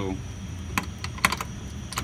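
A key turns in a lock with a metal click.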